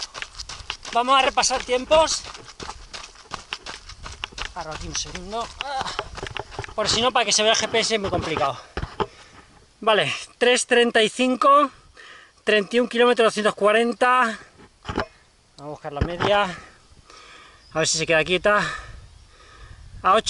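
A man speaks close by, a little out of breath.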